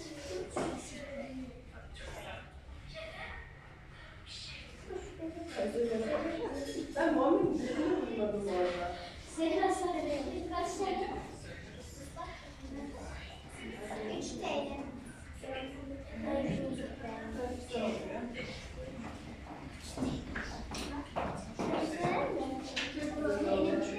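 Children chatter and call out.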